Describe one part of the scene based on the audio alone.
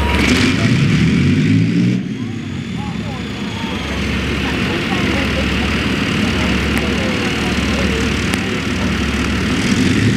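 A tank engine roars loudly nearby.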